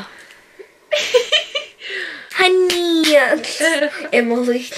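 A girl laughs close by.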